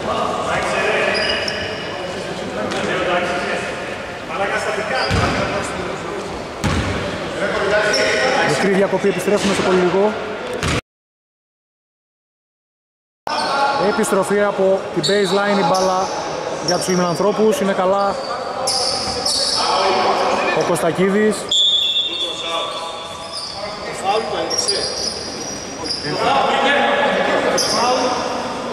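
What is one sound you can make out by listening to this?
Men talk loudly in a large echoing hall.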